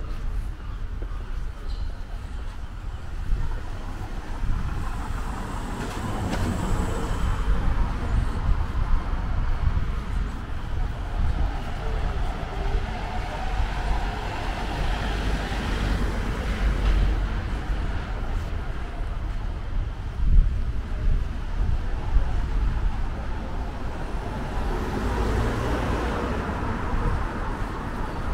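Wind rumbles steadily outdoors on a quiet street.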